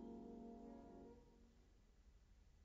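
A piano chord rings out and fades in a large, echoing hall.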